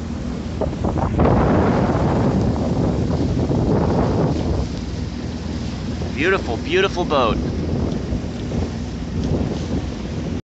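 Wind blows strongly outdoors, rumbling and buffeting throughout.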